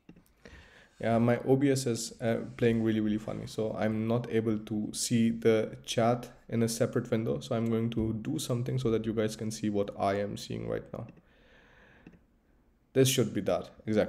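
A young man speaks calmly into a microphone, heard as in an online stream.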